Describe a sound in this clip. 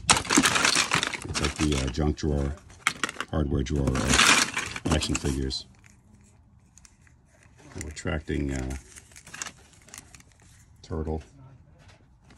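Plastic toys clatter and rattle as a hand rummages through a pile.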